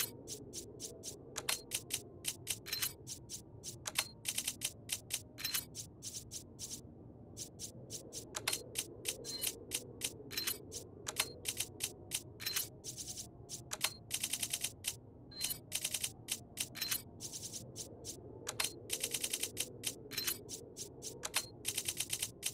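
Short, high menu clicks tick again and again.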